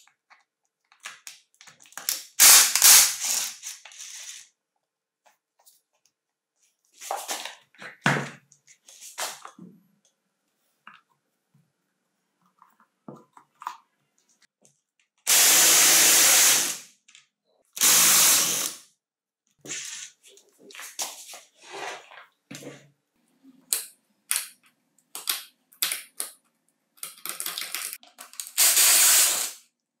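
A screwdriver scrapes and clicks against a plastic housing.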